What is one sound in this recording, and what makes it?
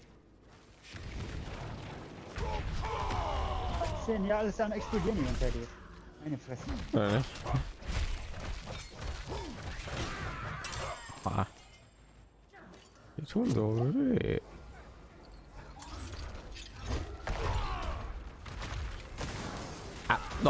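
Magic blasts and weapon hits crash and boom in a fight.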